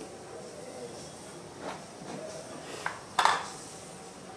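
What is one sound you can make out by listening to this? A plastic jar is set down with a knock on a hard floor.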